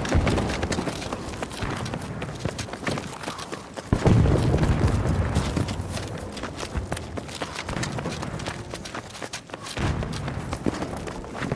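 A heavy machine engine rumbles steadily.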